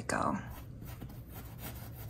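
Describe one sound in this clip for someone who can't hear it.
A paintbrush dabs softly on canvas.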